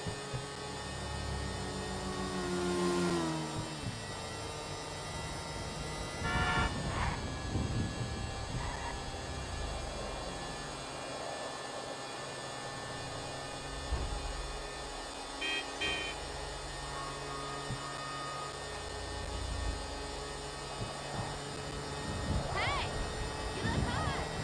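A motor scooter engine hums steadily and revs up and down.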